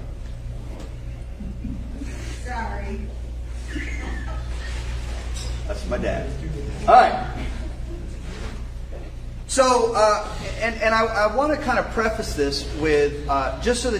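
A middle-aged man speaks to an audience in a large echoing hall, faint at first and then loud and animated.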